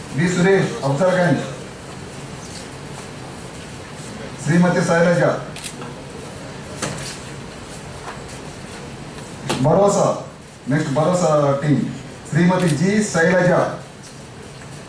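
A man speaks briefly in short bursts, close by.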